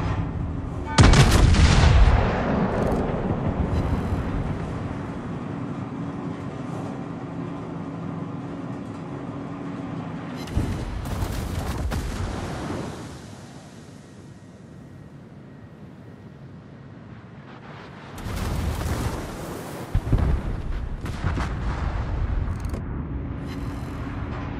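Heavy naval guns fire in loud booming salvos.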